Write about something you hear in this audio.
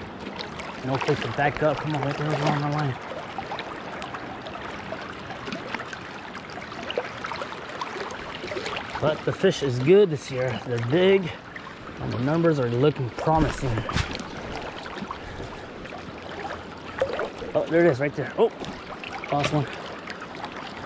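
A river flows steadily nearby.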